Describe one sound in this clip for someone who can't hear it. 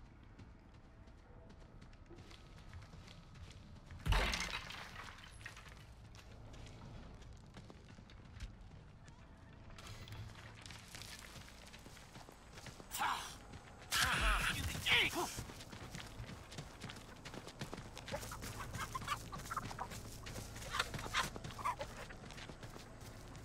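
Footsteps run quickly over wooden floors and then through grass and dirt.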